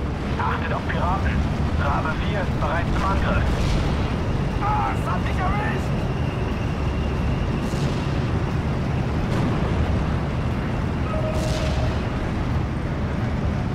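Rockets launch and roar away in a rushing whoosh.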